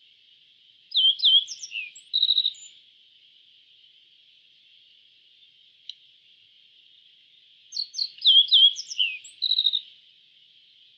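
A small songbird sings a short, bright phrase of chirps and trills, twice.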